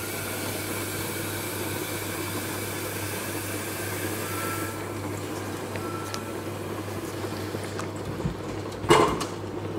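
Water runs from a tap into a kettle.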